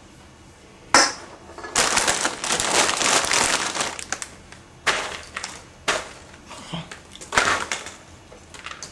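A plastic chip bag crinkles and rustles loudly.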